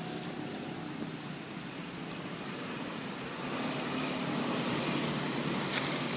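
A monkey rustles through dry leaves and grass.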